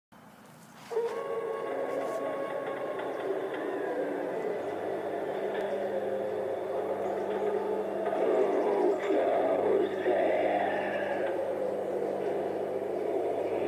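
A mechanical figure speaks in a deep, creepy voice through a small loudspeaker.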